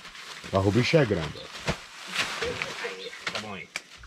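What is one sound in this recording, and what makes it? A plastic tarp rustles as it is dragged over the ground.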